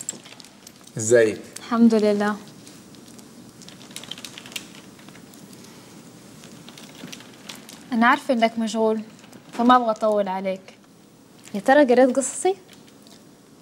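A young woman speaks and answers, close by.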